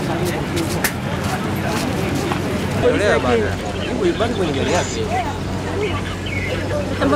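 A large crowd of men shouts and chatters loudly outdoors.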